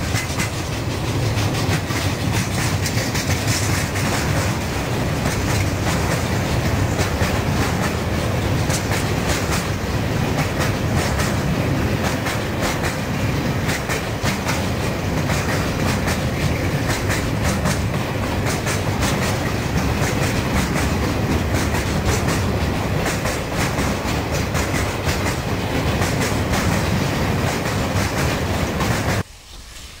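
A long freight train rumbles steadily past close by.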